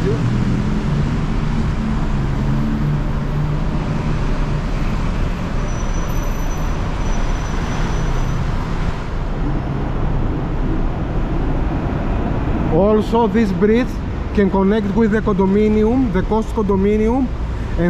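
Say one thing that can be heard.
City traffic rumbles steadily below, outdoors.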